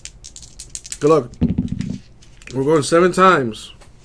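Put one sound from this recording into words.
Dice clatter and roll across a soft mat.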